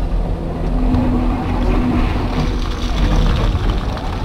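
Rocks scrape and tumble as an excavator bucket digs into rubble.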